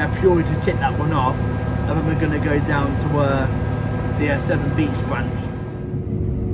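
A young man talks casually, close up.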